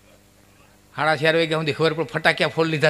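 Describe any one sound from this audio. An elderly man sings loudly through a microphone.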